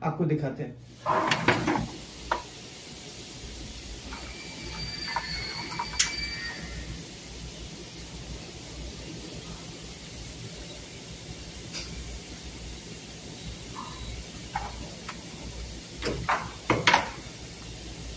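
Tools click and tap against an electrical panel.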